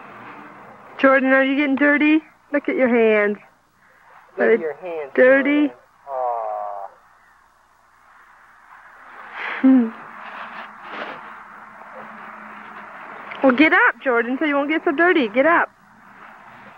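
A small child babbles and calls out up close.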